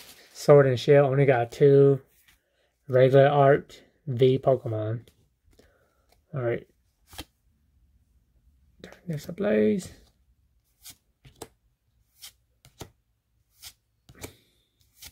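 Playing cards rustle and flick as they are shuffled in hands.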